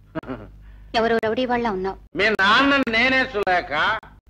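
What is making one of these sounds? A woman speaks firmly, close by.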